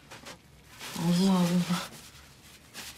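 A young woman speaks softly nearby.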